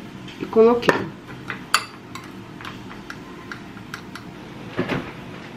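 A spoon clinks against a glass bowl.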